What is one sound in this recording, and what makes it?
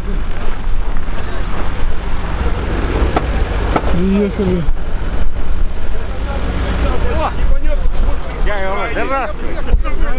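A heavy truck engine rumbles steadily outdoors.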